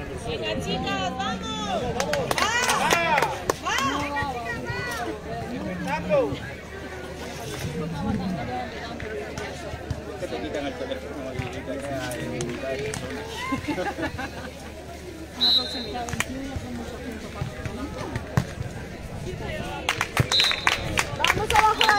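Young women call out and chatter outdoors.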